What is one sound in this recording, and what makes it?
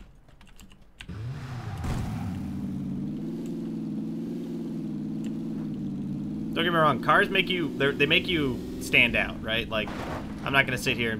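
A car engine starts and hums steadily as the car drives along.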